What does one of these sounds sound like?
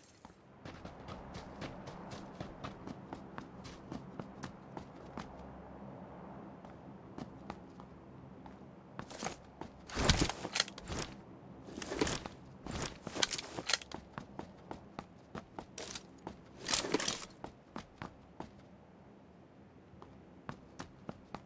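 Footsteps tap quickly on a hard tiled floor.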